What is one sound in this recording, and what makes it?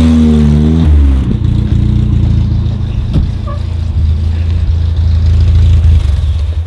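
A car engine rumbles loudly and revs close by.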